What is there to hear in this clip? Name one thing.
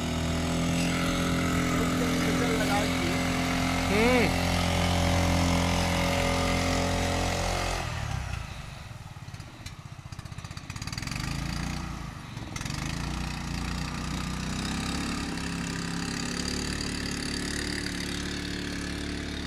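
A motorboat engine drones steadily nearby.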